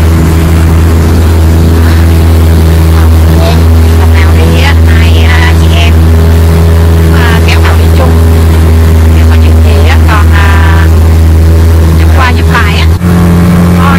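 An outboard motor drones loudly and steadily close by.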